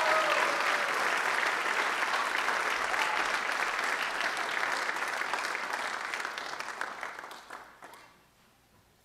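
An audience applauds in a large hall, then the clapping fades away.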